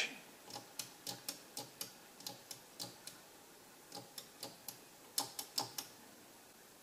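Toggle switches click rapidly one after another.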